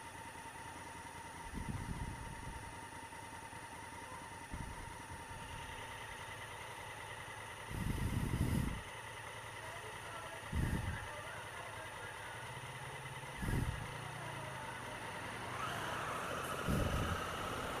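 A motorcycle engine idles with a steady hum.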